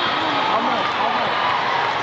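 Young women players cheer together.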